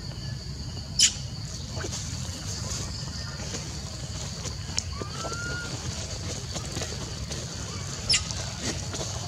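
A young monkey gives short, sharp, high squeaks.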